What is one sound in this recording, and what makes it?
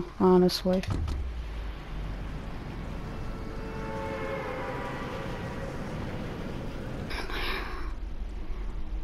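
Wind rushes steadily past during a fast fall through the air.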